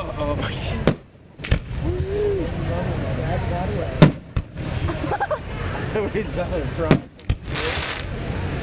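A firework rocket whooshes upward.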